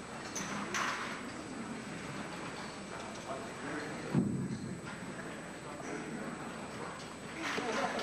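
A brass band plays in a large echoing hall.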